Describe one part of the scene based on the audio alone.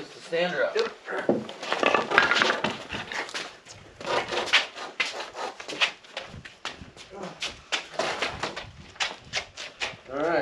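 Wooden boards knock and scrape as a frame is lifted upright.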